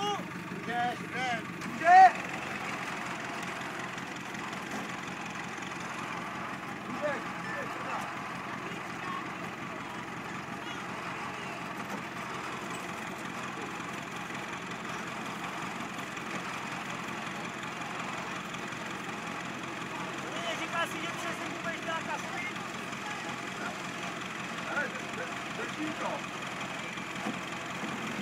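Men call out outdoors at a distance.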